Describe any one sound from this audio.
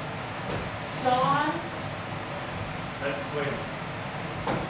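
A young woman speaks briefly in an echoing room.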